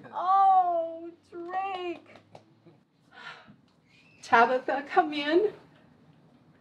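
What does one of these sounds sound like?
An elderly woman speaks warmly and emotionally up close.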